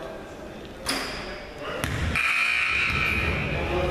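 A basketball thuds against the rim in an echoing gym.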